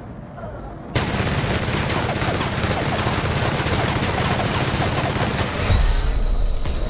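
A flamethrower roars in a steady rushing blast.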